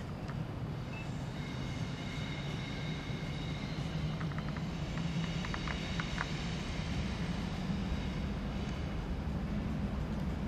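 A train's electric motor whines as it runs.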